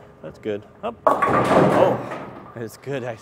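A bowling ball crashes into pins, which clatter and scatter.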